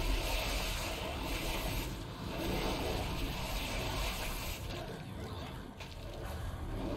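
Magic spells crackle and whoosh amid a clashing battle.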